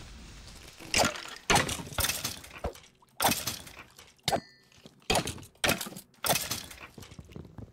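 A sword strikes creatures with quick, sharp hits.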